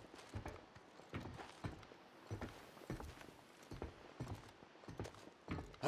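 Footsteps crunch on dirt ground.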